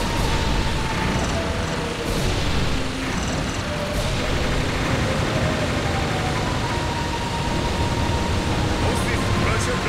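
Cannons fire in rapid bursts amid loud rumbling.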